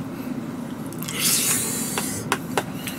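A man slurps noodles loudly.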